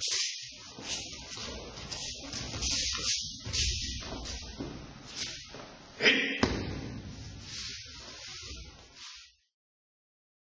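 Cloth swishes and rustles as two people grapple.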